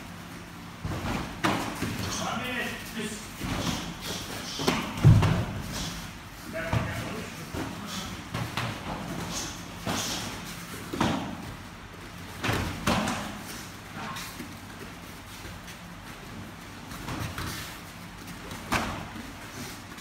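Kicks and punches thud against padded gloves and bodies.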